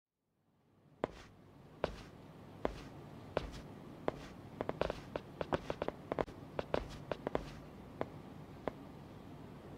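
Hard-soled footsteps walk steadily across a hard floor.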